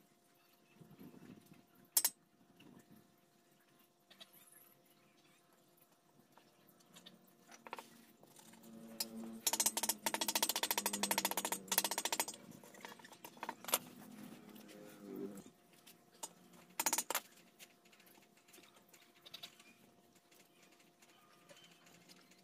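Metal tools clank and scrape against a metal part.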